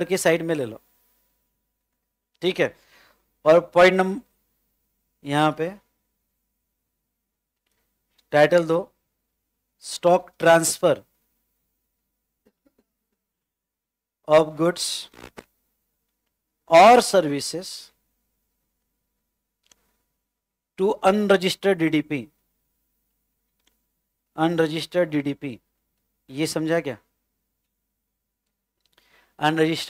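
A man speaks calmly into a close microphone, in short phrases with pauses.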